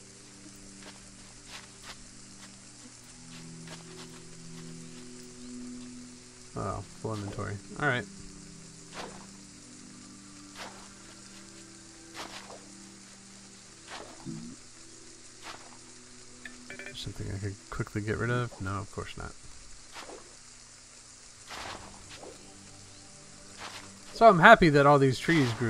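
Light footsteps patter on grass.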